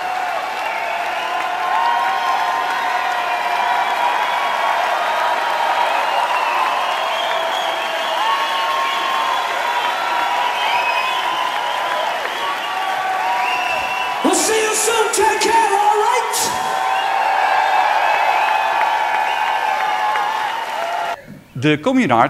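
A large crowd cheers and sings loudly in a big hall.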